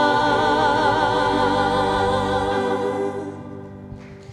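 A group of young singers sings together through microphones.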